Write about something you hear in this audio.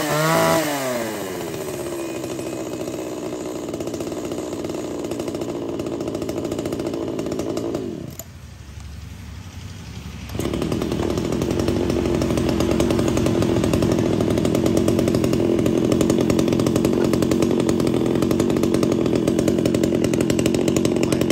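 A chainsaw engine idles with a steady, rattling putter.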